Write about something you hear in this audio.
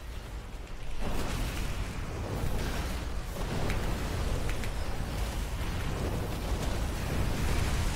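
Game sound effects of spells blast and crackle.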